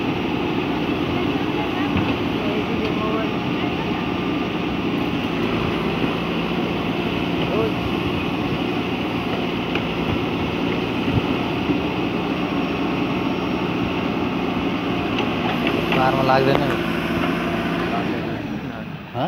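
A backhoe's diesel engine rumbles steadily close by.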